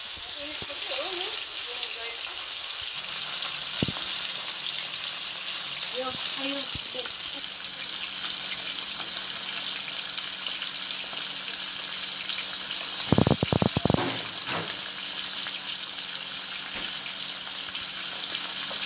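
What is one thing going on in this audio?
Hot oil sizzles and crackles steadily around frying fish.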